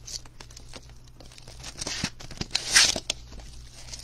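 A cardboard box lid slides open.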